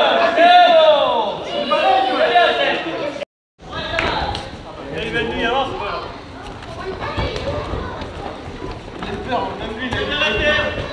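Several men talk and call out in a large echoing hall.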